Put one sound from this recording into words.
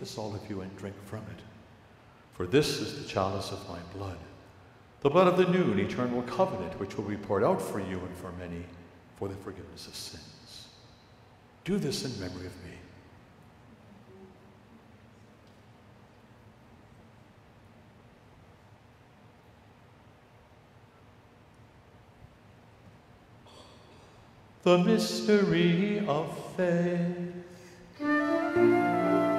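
An elderly man speaks slowly and solemnly into a microphone, echoing through a large hall.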